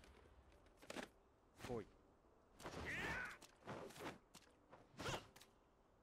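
A kick whooshes through the air.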